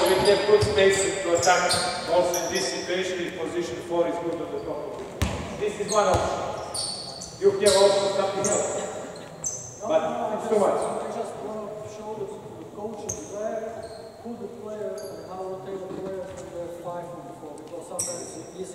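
A man calls out loudly to players in an echoing hall.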